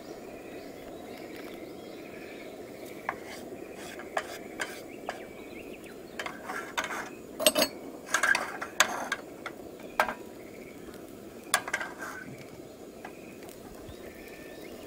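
Onions sizzle in a frying pan.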